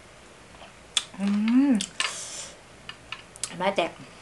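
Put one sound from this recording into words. A young woman chews and smacks her lips loudly up close.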